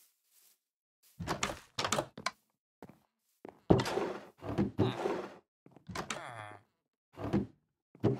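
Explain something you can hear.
Footsteps tap on wooden planks.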